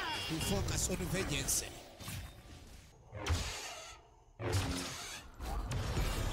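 Magic spell effects whoosh and crackle in quick bursts.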